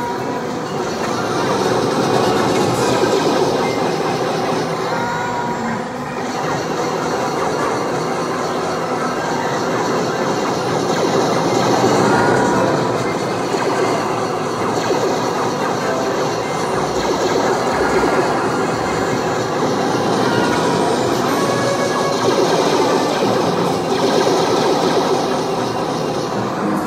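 Video game gunfire and engine noise blare steadily through a television speaker.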